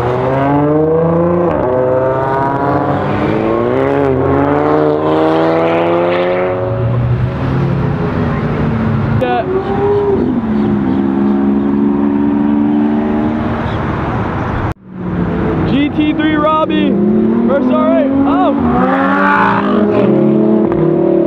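Powerful car engines roar and rev loudly as cars accelerate past.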